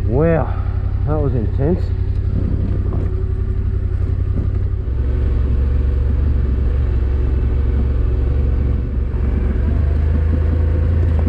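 Motorcycle tyres crunch over loose gravel and dirt.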